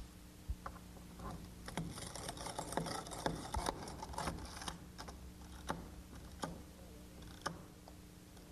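A tool scrapes and taps against a window frame.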